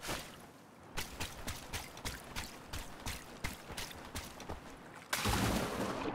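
Water splashes rhythmically with each wading step.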